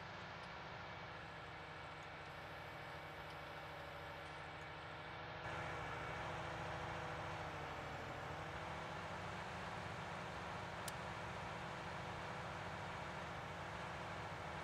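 A tractor engine rumbles steadily as the tractor drives along.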